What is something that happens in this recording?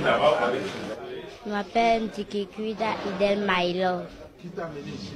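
A young girl speaks quietly and close into a microphone.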